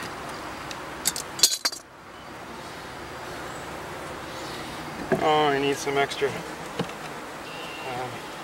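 A wooden board scrapes and knocks as it is lifted.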